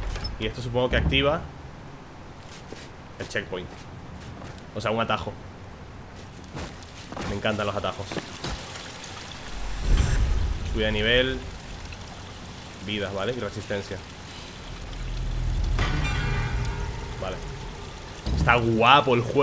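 A man talks with animation in bursts, close to a microphone.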